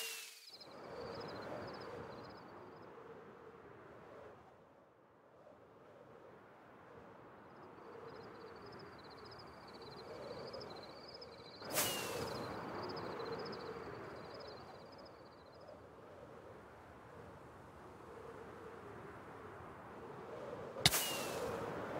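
A firework rocket launches with a sharp whoosh.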